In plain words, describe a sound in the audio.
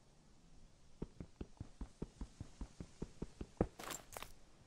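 A pickaxe taps rapidly against stone.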